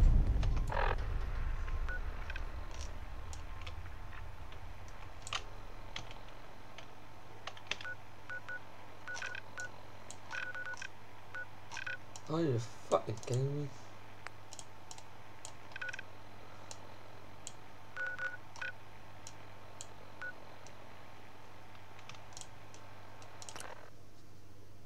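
Short electronic clicks and beeps sound again and again.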